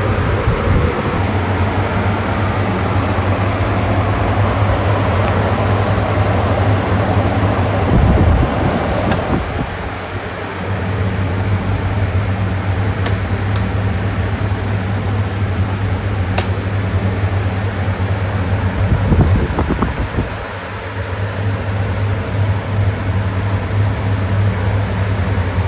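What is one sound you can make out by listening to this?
Electric fans whir and hum steadily.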